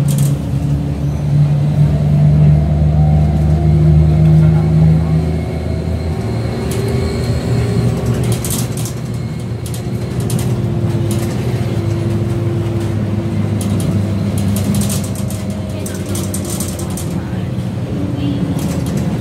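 The bus rattles and clatters as it drives over the road.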